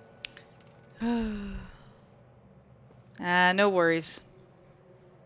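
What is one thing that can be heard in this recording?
A young man exclaims loudly into a microphone.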